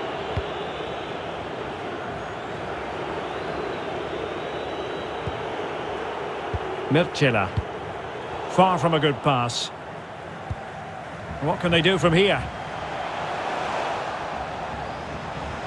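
A large crowd murmurs and cheers in a stadium.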